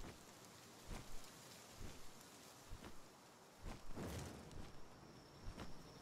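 Large wings flap steadily.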